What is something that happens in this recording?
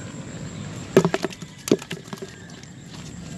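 A plastic bucket knocks and rattles in a hand.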